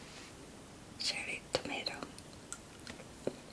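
A woman bites and chews a tomato close to a microphone.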